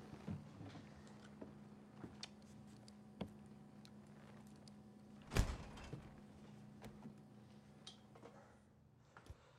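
An open refrigerator hums with a low, steady drone.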